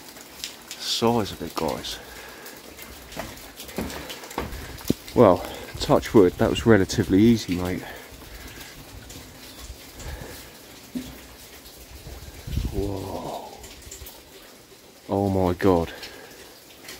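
A man speaks calmly close by, in short bursts.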